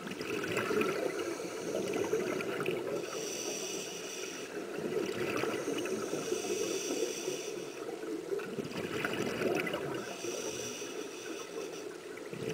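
Scuba breathing bubbles gurgle and rumble underwater in regular bursts.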